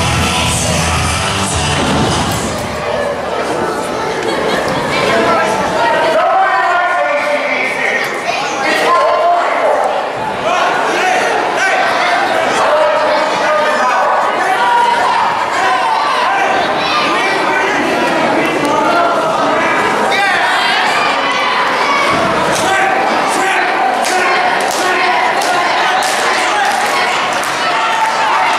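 A crowd of people chatters and cheers loudly in a large echoing hall.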